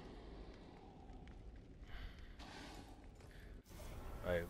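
Footsteps shuffle softly over gritty ground.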